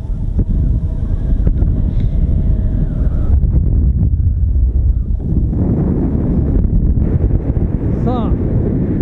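Wind rushes and buffets loudly against the microphone.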